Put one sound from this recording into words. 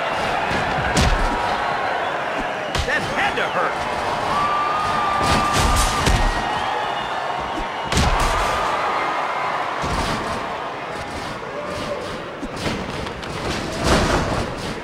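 Heavy bodies thud against a wrestling mat.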